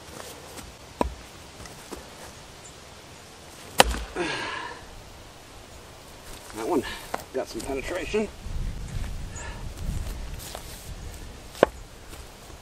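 An axe strikes a log with sharp knocks.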